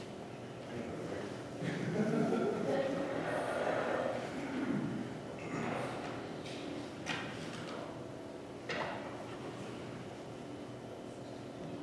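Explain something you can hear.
A man speaks to an audience in a large, echoing hall.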